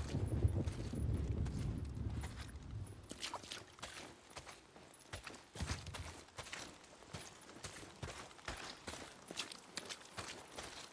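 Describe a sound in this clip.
Footsteps crunch over dry leaves and twigs.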